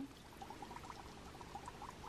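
Water sloshes gently as hands move in it.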